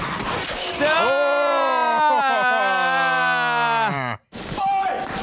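A young man shouts in excitement close to a microphone.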